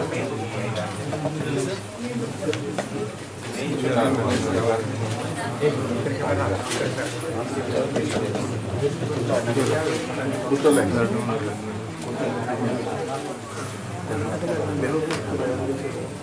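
An elderly man speaks calmly into a headset microphone.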